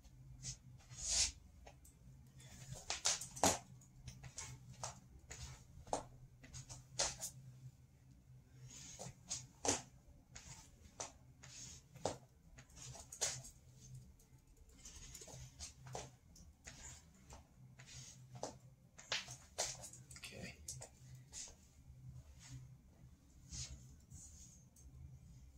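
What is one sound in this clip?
Feet and hands thump softly on a floor in quick repeated bursts.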